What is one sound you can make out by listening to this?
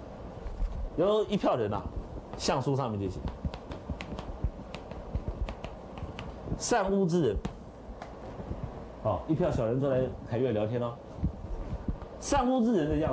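A middle-aged man speaks through a lapel microphone in a lecturing tone, in short bursts.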